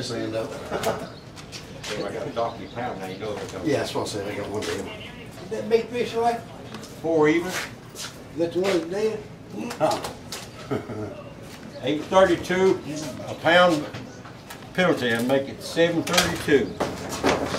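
An elderly man talks casually nearby.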